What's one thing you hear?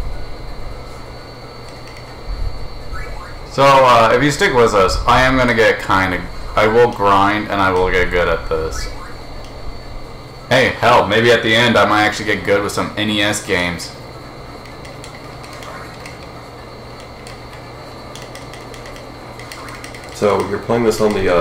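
Retro video game music plays with bleeping tones.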